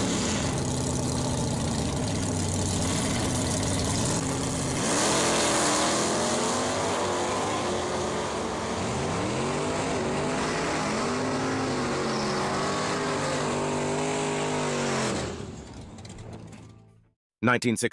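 A race car engine roars loudly as the car launches and speeds away down a track, fading into the distance.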